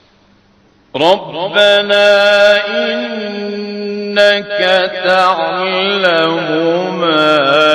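A man chants in a strong, melodic voice through microphones.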